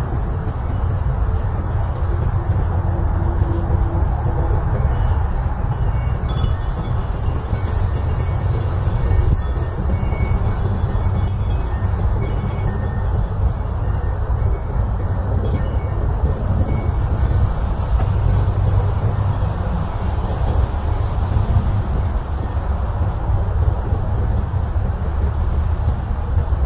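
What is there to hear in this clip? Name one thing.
Wind blows steadily outdoors with a low, buffeting rumble.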